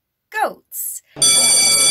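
A young woman exclaims brightly close to a microphone.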